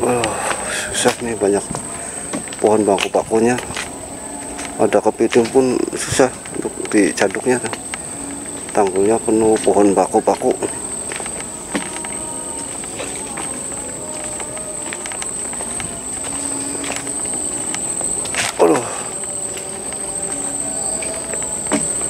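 Footsteps crunch slowly over a damp, leaf-strewn dirt path.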